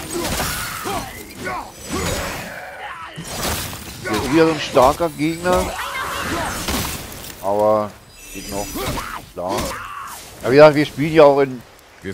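An axe swings and strikes with heavy thuds.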